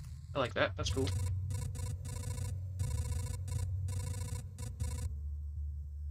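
Rapid electronic blips chatter in quick succession.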